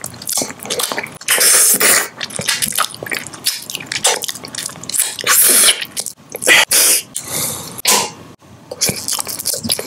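A man bites and crunches hard candy close to a microphone.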